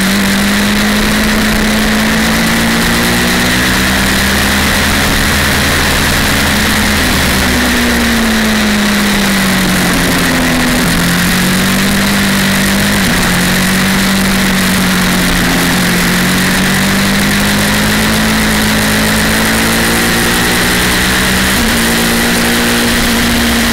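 A motorcycle engine roars at high revs, its pitch rising and falling through the gears.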